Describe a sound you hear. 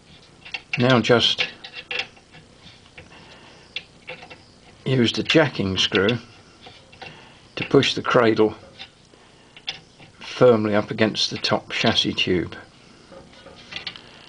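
A wrench clicks faintly against a metal nut as it turns.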